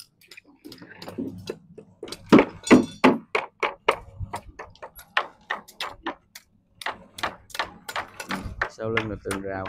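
Workers clink and scrape steel wire and bars close by.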